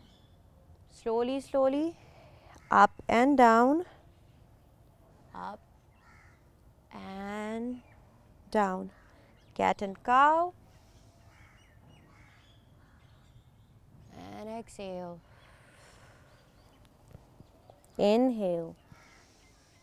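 A young woman speaks calmly nearby in short phrases with pauses.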